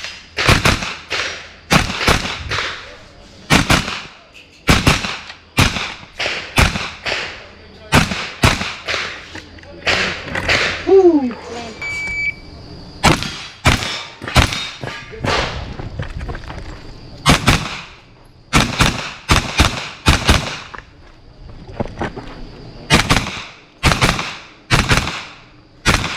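Pistol shots crack in quick bursts outdoors, each echoing briefly.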